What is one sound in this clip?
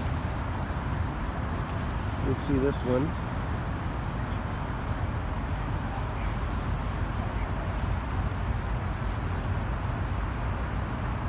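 Water laps gently nearby.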